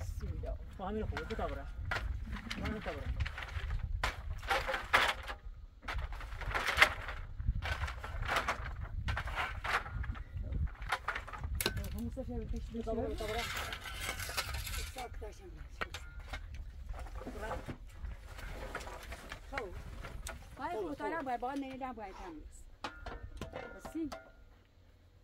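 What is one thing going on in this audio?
Wooden poles knock and clatter as they are laid in place.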